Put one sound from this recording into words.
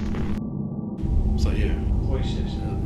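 A man speaks quietly close by, in an echoing passage.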